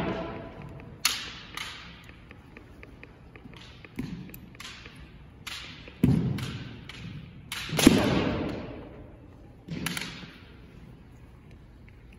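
Bamboo swords clack against each other.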